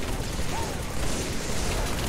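Rapid gunfire rattles in a short burst.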